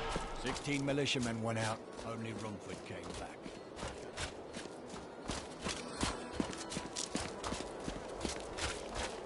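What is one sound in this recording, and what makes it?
Quick footsteps thud on the ground.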